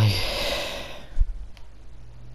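A pickaxe chops into a wooden wall.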